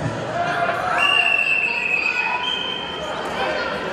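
A referee blows a long whistle.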